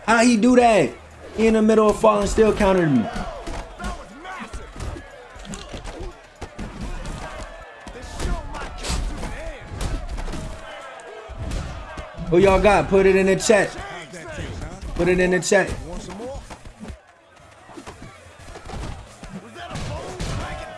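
Punches and thuds land in a game fight.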